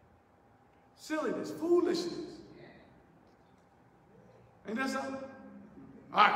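A man speaks through a microphone and loudspeakers in a reverberant hall.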